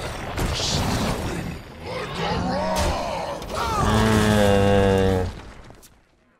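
A man talks into a nearby microphone with animation.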